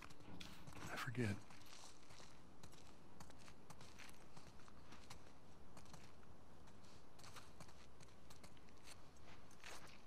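Footsteps scuff slowly across a gritty floor.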